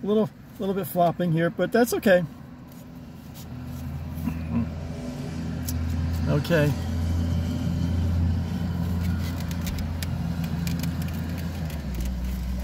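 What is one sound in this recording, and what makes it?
A car engine idles with a low hum.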